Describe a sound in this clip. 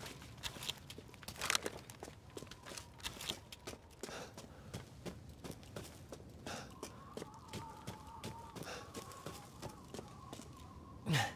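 Footsteps crunch through snow.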